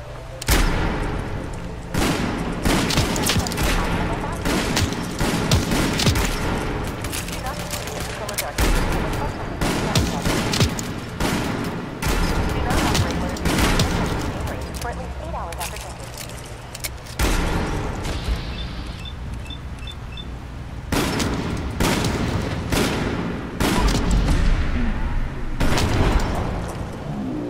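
Gunshots ring out again and again, loud and sharp.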